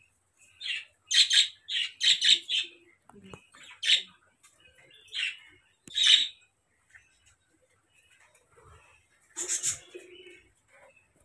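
A small bird chirps in distress.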